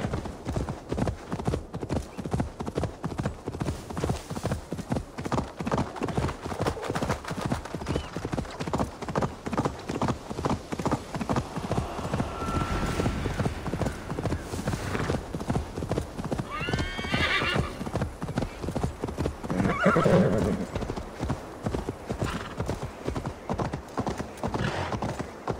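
A horse's hooves thud in a quick, steady gallop over soft ground.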